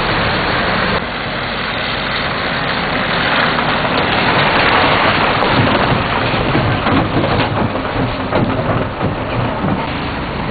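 A heavy truck rolls slowly over a potholed road.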